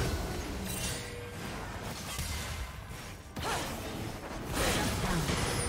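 Magic spells whoosh and crackle in a video game battle.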